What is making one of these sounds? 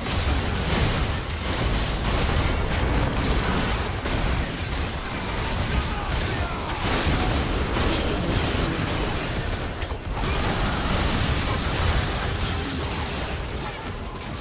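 Spell blasts and impacts crackle and boom in a fast game battle.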